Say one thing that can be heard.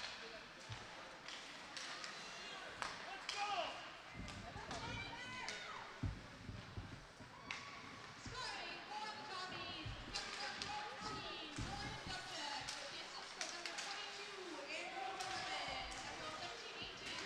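Skates scrape across the ice.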